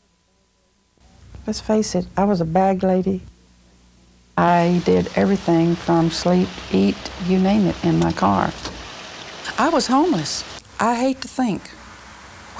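An elderly woman speaks calmly and warmly, close to a microphone.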